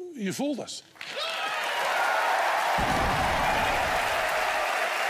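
A crowd cheers and applauds.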